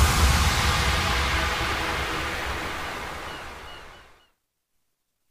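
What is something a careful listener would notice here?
Loud electronic music plays and fades away to silence.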